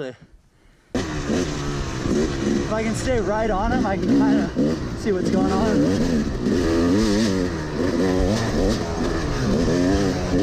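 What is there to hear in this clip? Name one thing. A dirt bike engine roars and revs loudly close by.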